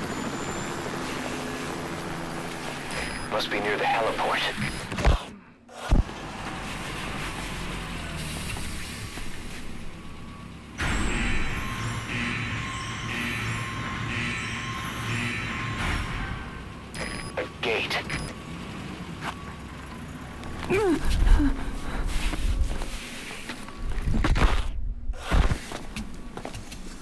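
A cassette tape plays back a recording.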